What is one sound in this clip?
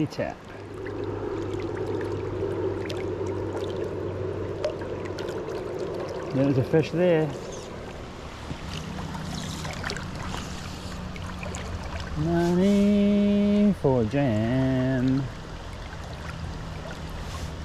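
A river flows and ripples steadily nearby.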